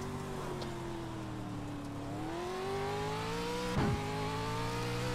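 A race car engine drones and climbs in pitch as the car speeds up.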